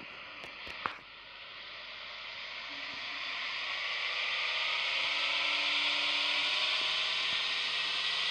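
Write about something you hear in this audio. A car engine revs up and roars louder and louder.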